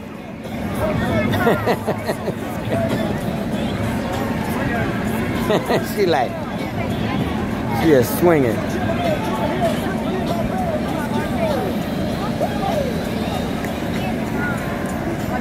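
A fairground ride's machinery whirs steadily.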